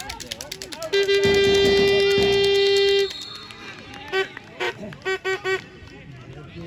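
A referee's whistle blows one long blast, then several short blasts.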